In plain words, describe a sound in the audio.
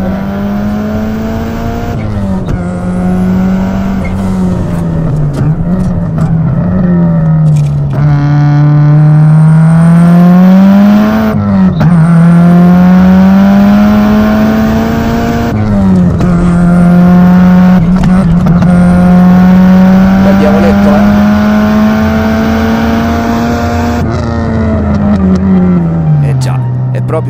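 A car engine roars loudly, its revs rising and dropping as it shifts gears.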